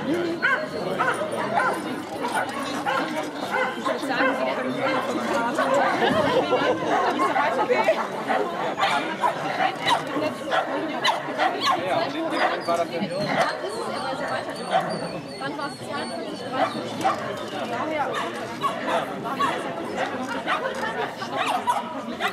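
A man calls out commands to a dog outdoors.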